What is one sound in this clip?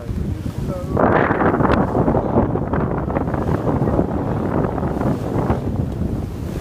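A sail flaps and rustles in the wind.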